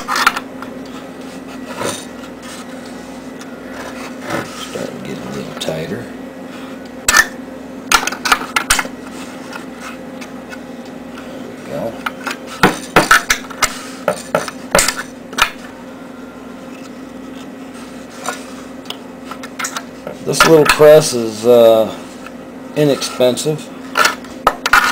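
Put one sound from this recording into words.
A metal can creaks and crackles as it is slowly crushed.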